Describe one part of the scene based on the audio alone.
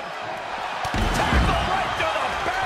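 A heavy body slams down hard with a loud thud.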